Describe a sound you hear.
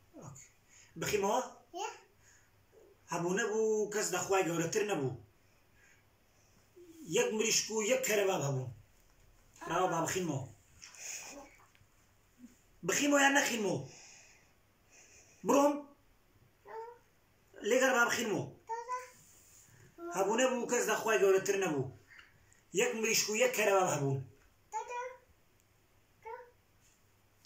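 A toddler babbles and chatters close by.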